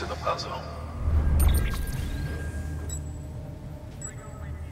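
A low electronic rumble and glitching crackle swell and fade.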